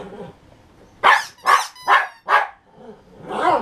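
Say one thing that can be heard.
A small dog barks excitedly.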